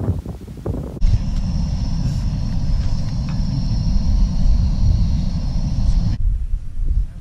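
A camping stove roars steadily.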